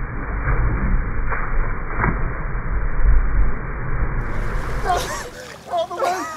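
Water splashes loudly as a man jumps in.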